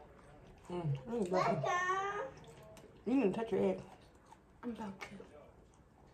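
Crispy bacon crunches as it is chewed.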